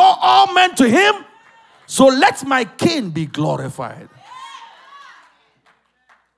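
A man shouts passionately into a microphone, heard through loudspeakers.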